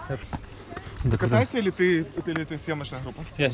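A man speaks up close, asking a question.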